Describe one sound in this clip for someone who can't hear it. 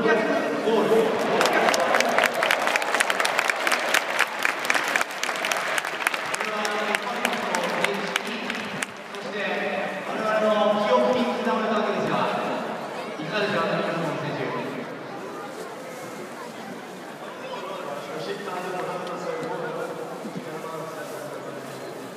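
A large stadium crowd chants and sings together, echoing outdoors.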